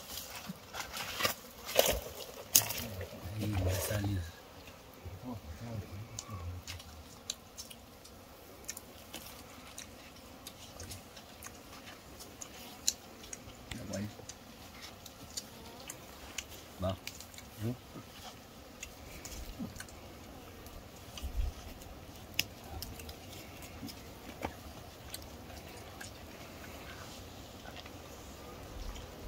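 Leaves rustle and twigs crack as a man climbs among branches.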